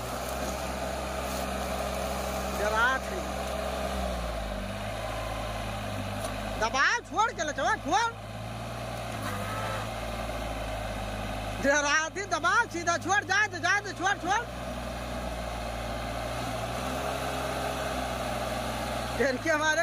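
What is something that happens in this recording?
A small tractor engine rumbles steadily close by.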